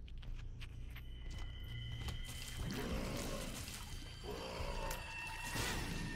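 Video game sound effects pop and zap rapidly.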